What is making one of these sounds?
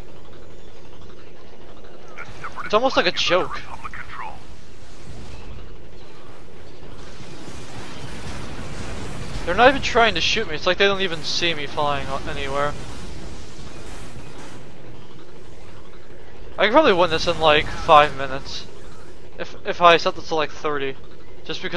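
A jetpack roars steadily.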